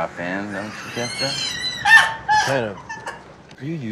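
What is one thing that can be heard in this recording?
A young man laughs heartily.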